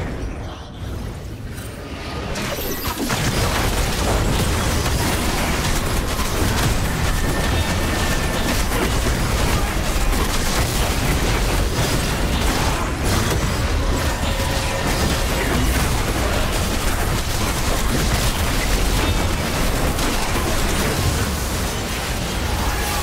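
Video game spell effects crackle and boom in a busy fight.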